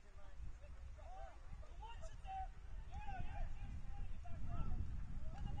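Young players shout to each other far off across an open field.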